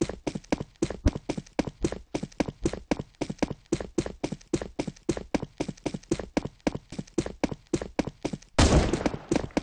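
Quick footsteps patter steadily on a hard surface.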